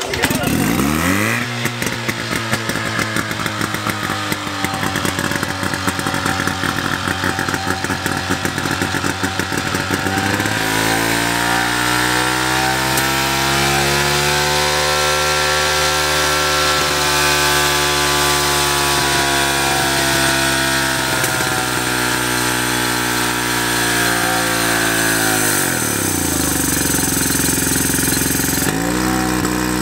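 A small pump engine roars loudly up close, revving up and down.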